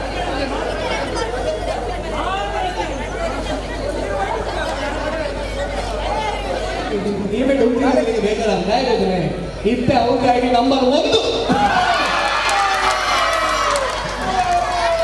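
A large crowd of men and women chatter and call out outdoors.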